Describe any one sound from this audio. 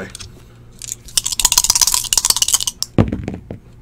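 Dice rattle sharply inside cupped hands.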